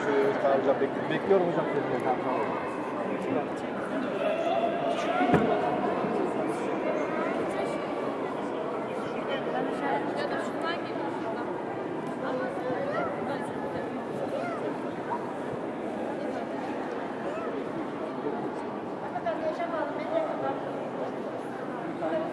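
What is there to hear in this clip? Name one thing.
A crowd of people murmur and chatter in a large echoing hall.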